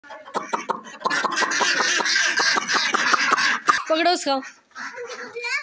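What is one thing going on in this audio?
Ducks quack loudly and excitedly close by.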